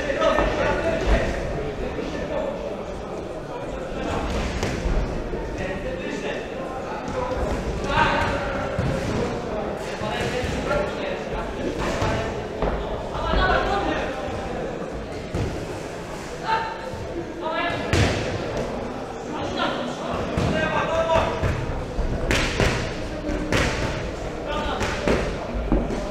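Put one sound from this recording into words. A crowd murmurs and calls out in an echoing hall.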